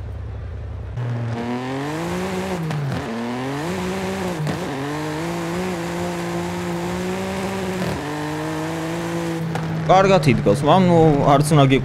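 A car engine revs and roars, rising and falling through the gears.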